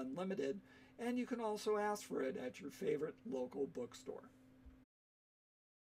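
An older man speaks calmly and close up, as if over a computer microphone.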